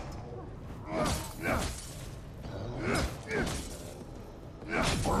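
A metal bar strikes a metal door repeatedly.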